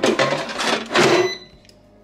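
A fryer basket slides shut with a thud.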